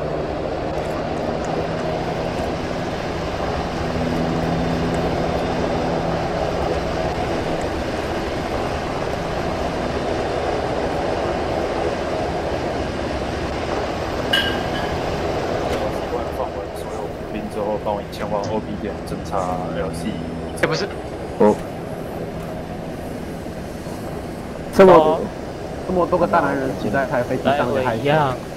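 A helicopter's engine and rotor whir steadily close by.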